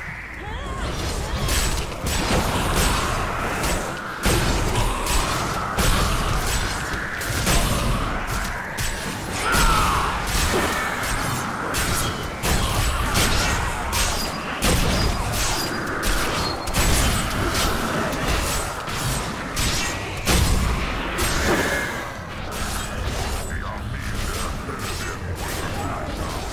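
Game spells blast and crackle in rapid bursts.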